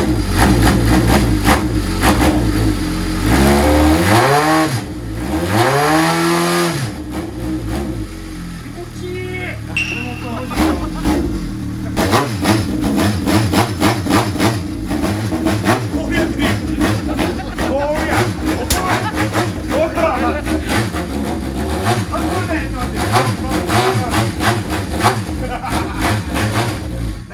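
A motorcycle engine revs loudly up and down in rhythmic bursts nearby.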